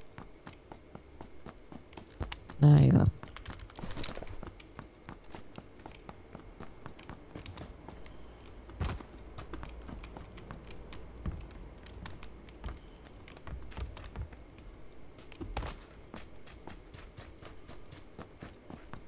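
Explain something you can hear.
Quick footsteps tap and thud on hard ground and wooden stairs.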